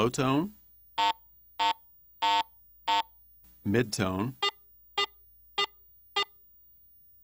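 A metal detector beeps in short, evenly spaced tones.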